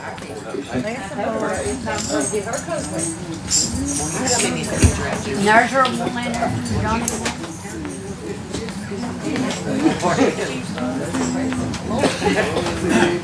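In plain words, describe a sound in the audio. A woman sings through a microphone and loudspeakers.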